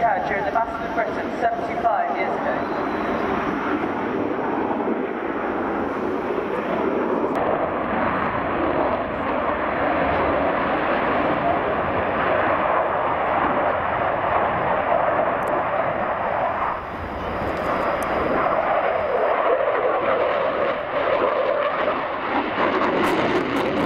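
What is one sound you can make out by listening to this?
A jet engine roars loudly overhead and rumbles on steadily.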